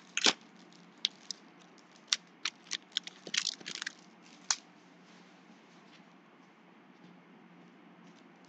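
Trading cards tap and shuffle against a stack.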